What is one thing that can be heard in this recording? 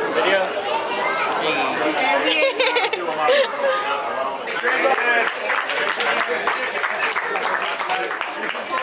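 A crowd of people chatter loudly all around, outdoors.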